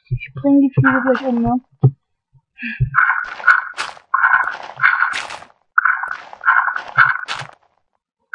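Dirt crunches in quick repeated scrapes as blocks are dug out.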